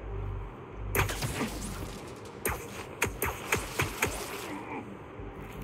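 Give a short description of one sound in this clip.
Blows land with heavy thuds in a fistfight.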